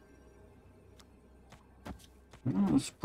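Short clicking effects sound as cards are played in a digital card game.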